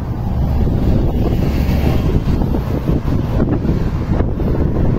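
A bus drives past.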